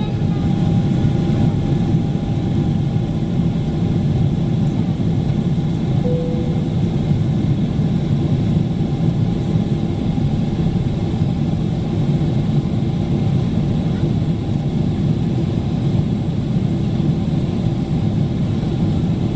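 The jet engines of a Boeing 777-300ER roar as it climbs, heard from inside the cabin.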